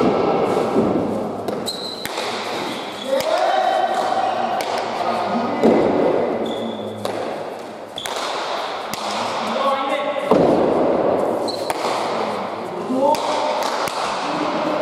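A ball smacks hard against the walls of a large echoing hall.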